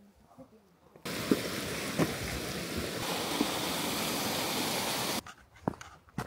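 A waterfall splashes and rushes steadily.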